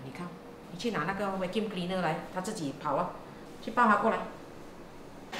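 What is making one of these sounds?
A middle-aged woman speaks briskly close by.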